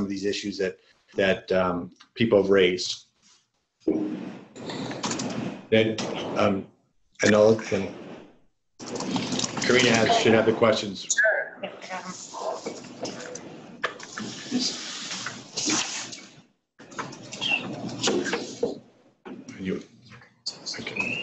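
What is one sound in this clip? A man speaks calmly through a microphone, with short pauses.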